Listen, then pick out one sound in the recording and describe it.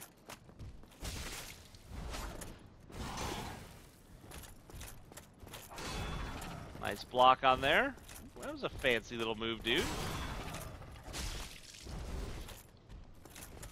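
Heavy armoured footsteps thud on stone.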